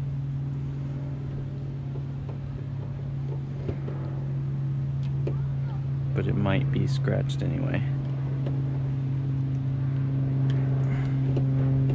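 A small metal tool scrapes and clicks against a car door.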